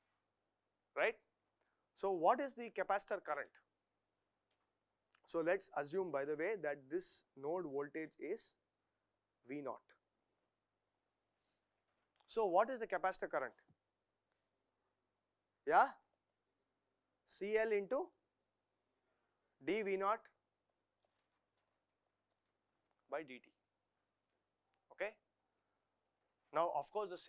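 A man speaks calmly and clearly into a close microphone, pausing often.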